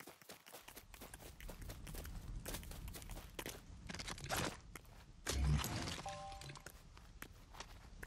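Quick footsteps patter across grass and dirt.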